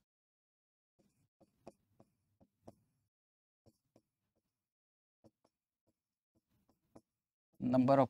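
A pen taps and scratches softly on a writing surface.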